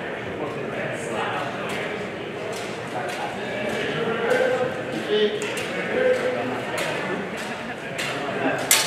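Wooden swords clack and knock together in an echoing hall.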